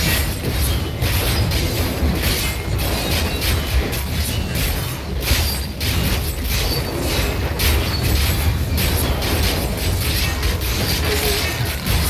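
Game sword slashes and spell blasts hit enemies over and over.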